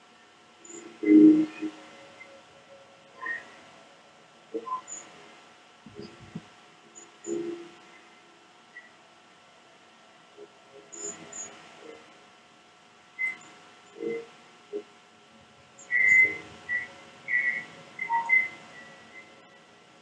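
A lioness growls low and close by.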